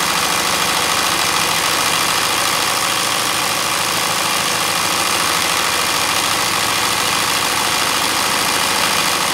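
A sewing machine stitches rapidly and steadily, close by.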